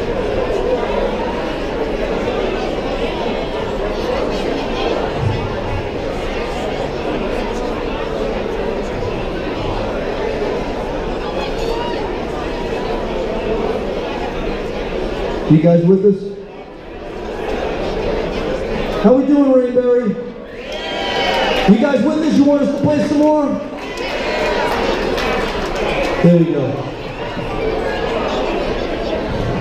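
A band plays live music loudly on stage.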